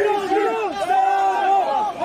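A young man shouts slogans close by.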